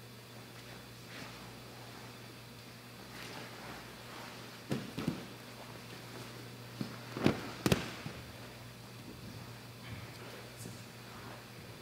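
Gi fabric rustles and scuffs against the mat.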